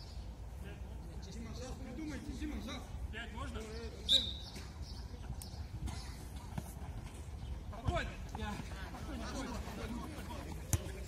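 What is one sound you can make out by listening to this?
Young men shout to each other at a distance outdoors.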